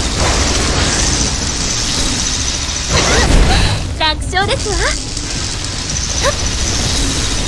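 A game's energy gun fires in crackling, buzzing bursts.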